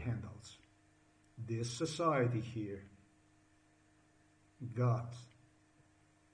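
A middle-aged man speaks calmly and close to a microphone, in short bursts.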